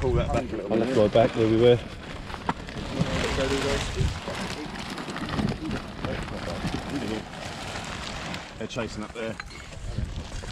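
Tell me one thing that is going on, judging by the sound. Small dogs scratch and dig in loose soil.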